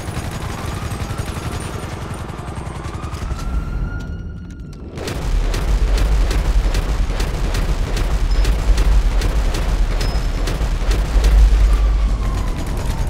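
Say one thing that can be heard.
Gunshots fire in rapid bursts, sharp and loud.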